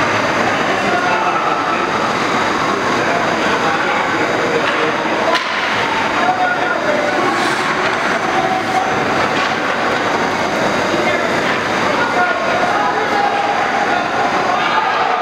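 Ice hockey skates scrape and carve across ice in a large echoing rink.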